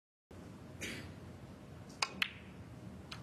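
Snooker balls knock together with a short click.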